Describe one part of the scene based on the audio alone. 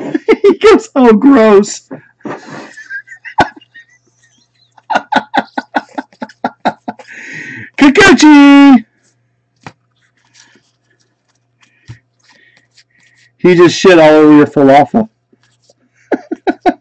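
Stiff trading cards rustle and slide as they are flipped through by hand.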